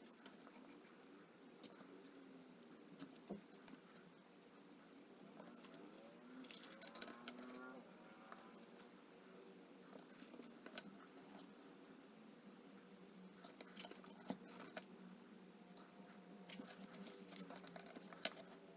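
Pencils click and rattle against each other as they are handled.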